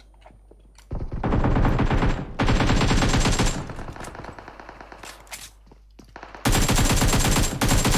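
Rapid rifle fire rings out in loud bursts.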